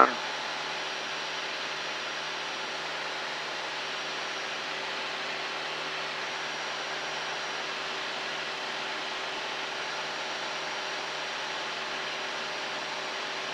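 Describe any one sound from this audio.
A small plane's engine drones steadily inside the cabin.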